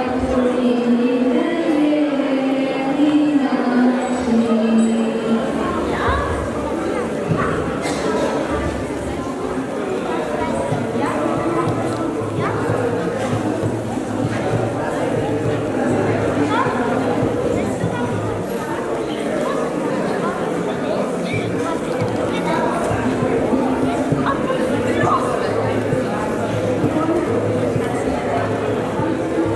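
Many people chatter in an echoing hall.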